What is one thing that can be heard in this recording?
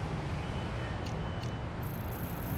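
A game menu makes two short clicking beeps as an option is selected.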